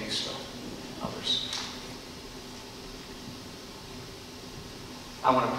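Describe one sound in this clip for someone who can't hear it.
An elderly man speaks calmly into a microphone in a large echoing room.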